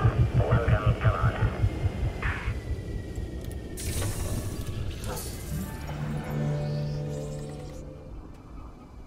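A spaceship engine rumbles loudly and fades away.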